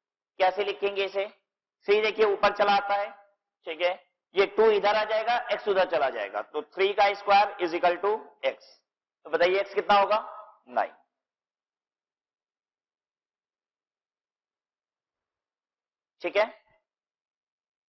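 A man explains calmly into a close microphone.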